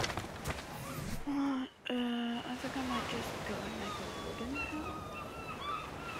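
Waves wash gently onto a sandy shore.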